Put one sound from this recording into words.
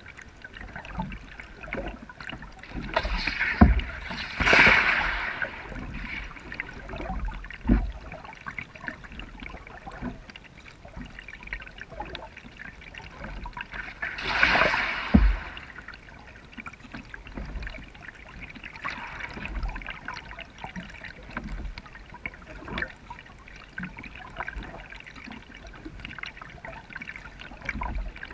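A kayak paddle dips and splashes in calm river water.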